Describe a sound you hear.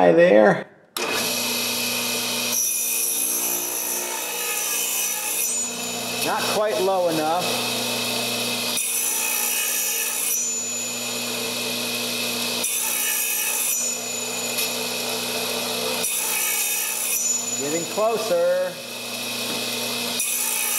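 A saw motor hums and whines steadily.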